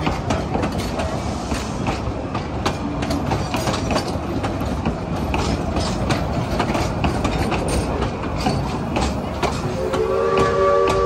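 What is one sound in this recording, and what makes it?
Train wheels clatter and click steadily over the rails close by.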